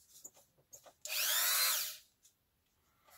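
A small rotary tool whirs briefly at high speed.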